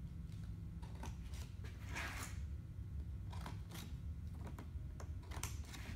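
Tin snips cut through sheet metal with crisp clicks.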